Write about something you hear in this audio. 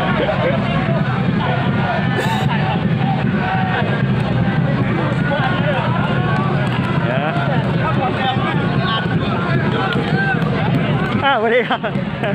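Several young men chatter and call out to each other outdoors.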